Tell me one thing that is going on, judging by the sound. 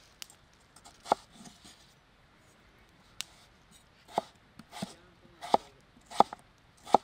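A knife chops through raw potato onto a wooden board with sharp, regular knocks.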